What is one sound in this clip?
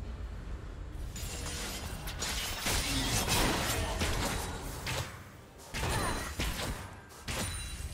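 Magic blasts and hits crackle and burst in a video game fight.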